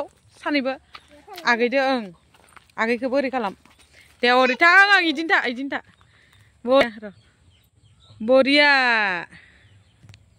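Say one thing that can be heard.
A young girl speaks close by in a high, lively, sing-song voice.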